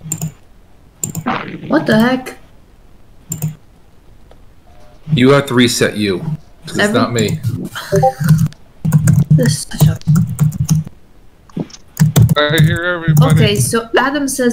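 Men talk casually over an online call.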